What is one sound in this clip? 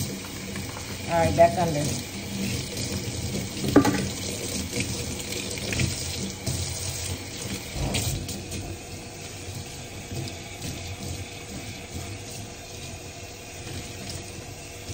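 Fingers scrub and squish through soapy lather.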